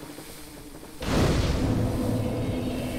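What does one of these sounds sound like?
A fire bursts alight with a loud whoosh.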